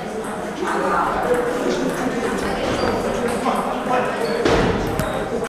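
Men talk in the background.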